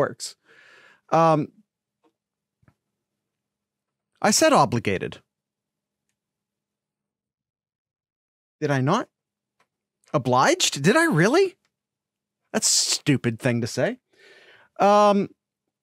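A man talks with animation through a microphone, in short bursts with pauses.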